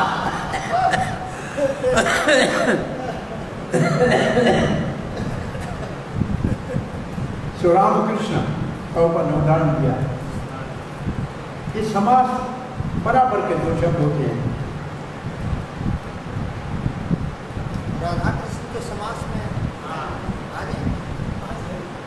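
An elderly man sings slowly into a microphone, heard through a loudspeaker in a room.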